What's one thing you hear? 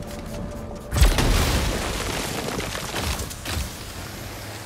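Rubble and debris crash down loudly and tumble.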